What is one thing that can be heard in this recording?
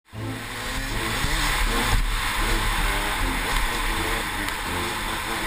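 A motorcycle engine roars at speed.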